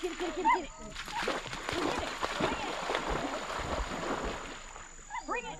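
A dog splashes into water.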